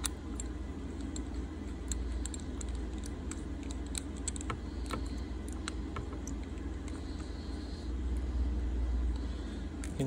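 A small tool clicks as it is turned.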